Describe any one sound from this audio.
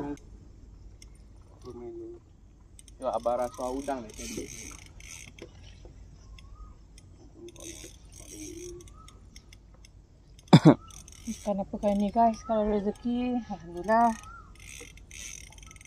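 A fishing reel whirs and clicks as line is wound in.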